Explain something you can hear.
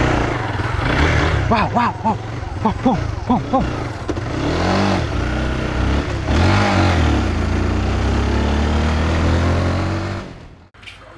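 A motorbike engine hums as the motorbike rides away.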